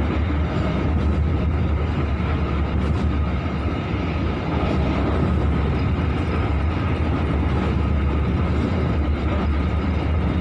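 Wind buffets loudly past an open train window.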